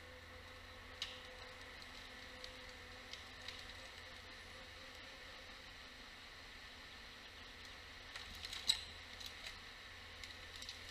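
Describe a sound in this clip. Branches crack and snap as a harvester handles a felled tree.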